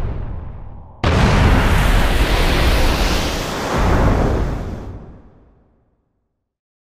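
A loud blast roars and slowly fades.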